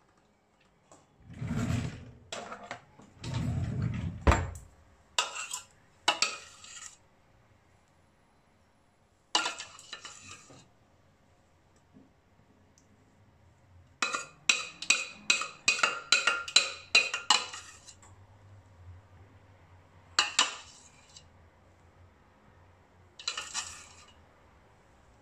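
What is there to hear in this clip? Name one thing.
A metal spoon scrapes and clinks against a metal pot.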